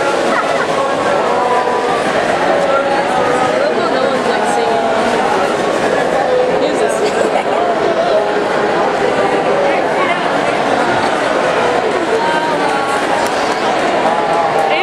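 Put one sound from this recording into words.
A large crowd of young people sings together in a big echoing hall.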